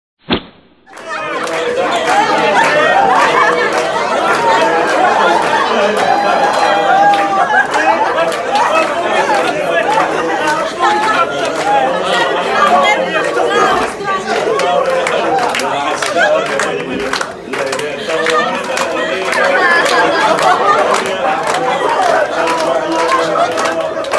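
A crowd of men and women talks and cheers loudly in a busy room.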